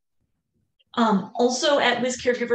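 A woman speaks clearly through an online call.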